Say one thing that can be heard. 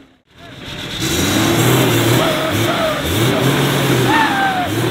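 A large off-road engine roars and revs hard.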